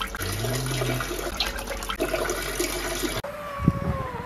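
A stream of liquid trickles into toilet water.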